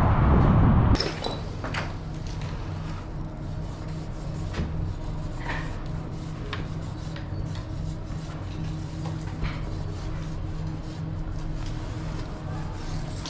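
A marker squeaks across glass.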